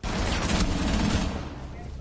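Rapid gunfire rattles nearby.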